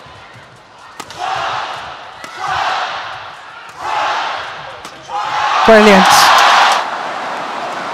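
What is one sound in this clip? A large crowd cheers and shouts in an echoing arena.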